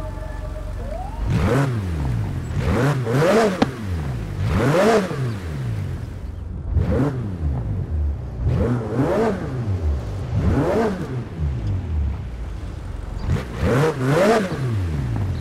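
A sports car engine idles and revs hard again and again, its pitch rising and falling sharply.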